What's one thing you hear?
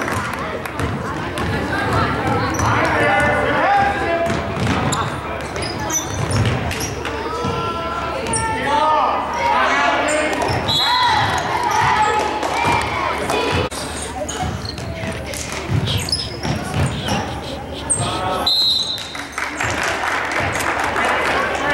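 A crowd of spectators cheers and chatters in a large echoing gym.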